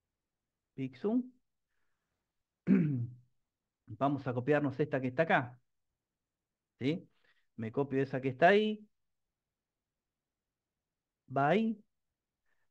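A man speaks calmly in short phrases through a microphone, as on an online call.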